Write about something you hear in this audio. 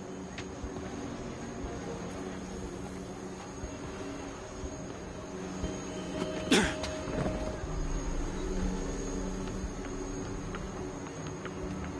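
City traffic hums steadily far below.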